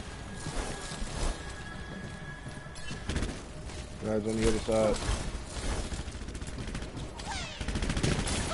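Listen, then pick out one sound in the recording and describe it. Gunfire and weapon blasts crackle in quick bursts.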